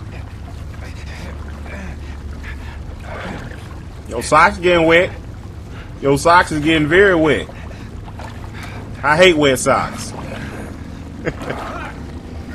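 Water splashes as a man crawls through it.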